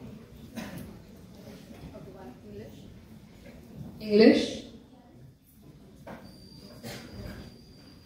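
A young woman speaks with animation into a microphone, heard over loudspeakers.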